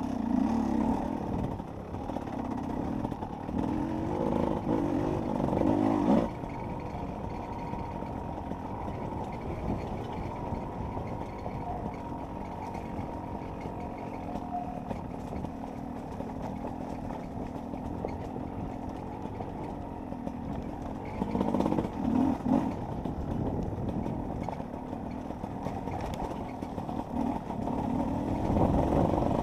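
A dirt bike engine revs and roars up close, rising and falling with the throttle.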